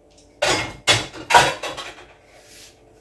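Dishes clatter on a counter.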